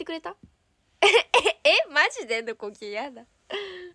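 A young woman laughs close to a phone microphone.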